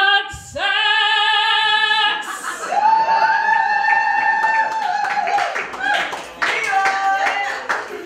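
A young woman sings loudly and with power into a microphone, holding long notes.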